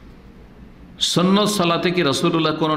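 A man speaks calmly and steadily into a close microphone.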